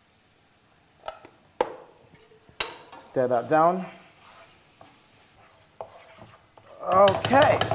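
A spoon scrapes and clinks in a frying pan.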